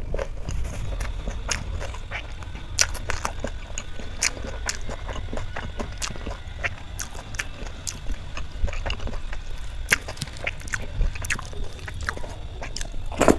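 A woman chews food loudly with wet, smacking sounds close to a microphone.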